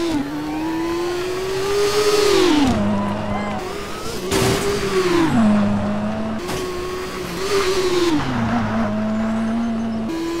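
Tyres crunch and skid on gravel.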